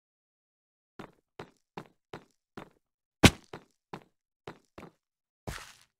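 Footsteps tap quickly on a hard surface.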